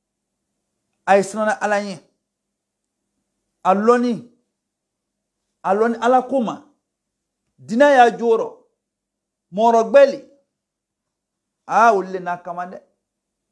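An elderly man recites in short, melodic phrases close to a microphone, with pauses between them.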